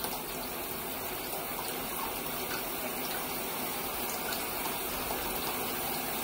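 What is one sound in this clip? Water bubbles and churns steadily in a tub.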